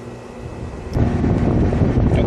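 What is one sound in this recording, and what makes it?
An air conditioner hums and blows air.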